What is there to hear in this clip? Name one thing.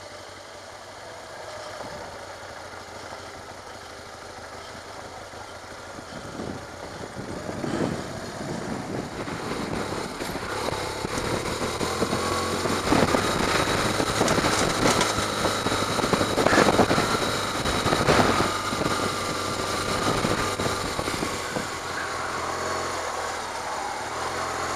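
Tyres crunch and rattle over rough gravel.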